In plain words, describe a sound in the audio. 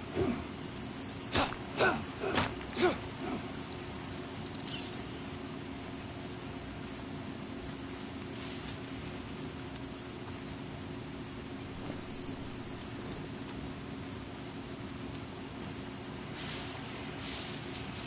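Footsteps rustle through dense leafy undergrowth.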